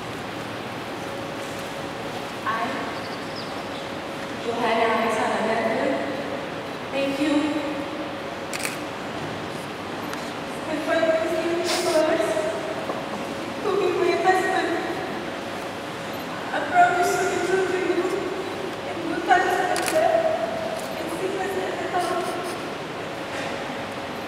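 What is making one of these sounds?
A young woman speaks softly into a microphone.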